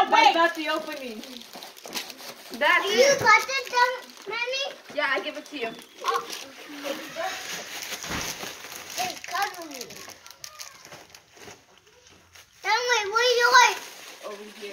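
A young child speaks excitedly nearby.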